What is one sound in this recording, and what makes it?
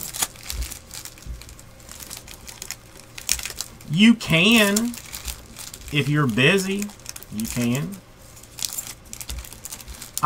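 A foil pack crinkles and rustles as it is torn open.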